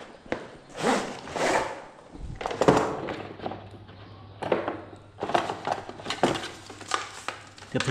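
Plastic and cardboard packaging rustles as hands unpack it.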